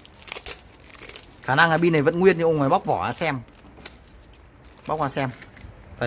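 Sticky tape crinkles and peels as hands pull it off.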